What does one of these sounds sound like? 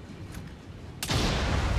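A pistol fires a loud shot at close range.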